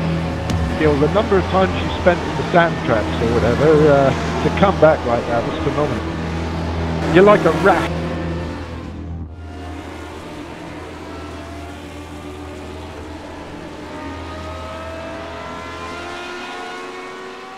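Racing car engines whine at high revs as cars speed past.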